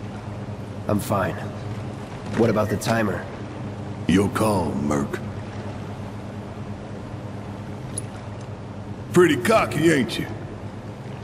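A young man speaks calmly.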